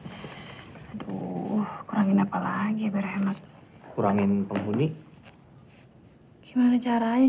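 A young woman speaks quietly and hesitantly nearby.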